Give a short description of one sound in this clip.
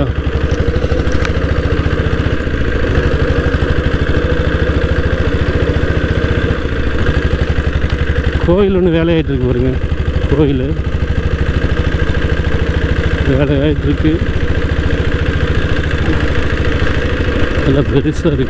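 A motorcycle engine thumps steadily up close as it rides along.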